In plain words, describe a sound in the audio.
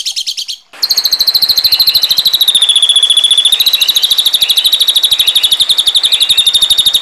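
A bird calls in a fast, harsh, high chatter of rapidly repeated notes.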